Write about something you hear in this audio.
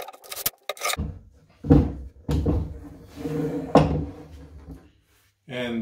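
A heavy wooden board thuds down onto a bench.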